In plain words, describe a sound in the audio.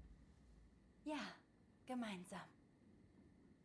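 A woman speaks softly and briefly, close by.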